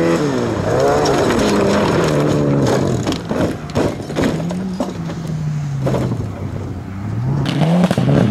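Gravel and stones spray and rattle under skidding tyres.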